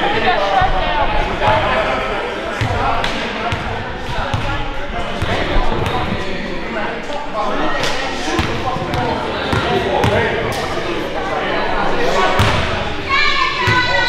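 Young people chatter and call out across a large echoing gym.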